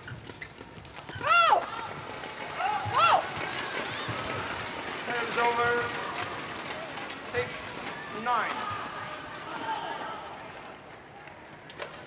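A large crowd cheers and applauds in an echoing hall.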